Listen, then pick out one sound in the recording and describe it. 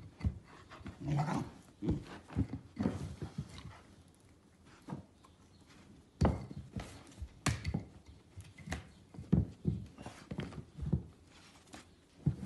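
A dog growls and grunts playfully.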